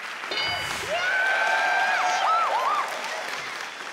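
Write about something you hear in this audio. A young woman screams with joy.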